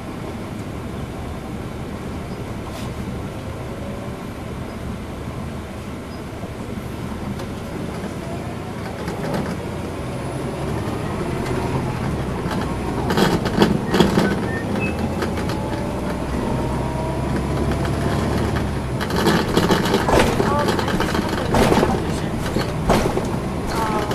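A bus engine hums steadily from inside the bus as it drives along.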